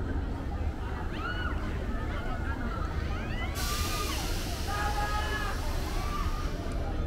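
Riders scream and shriek from a distance.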